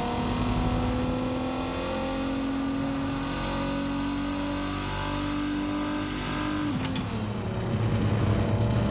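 A small classic hatchback's engine hums as it drives along.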